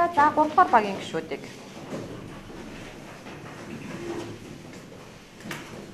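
A young woman speaks clearly.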